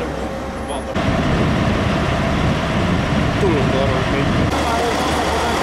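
A diesel locomotive engine drones nearby.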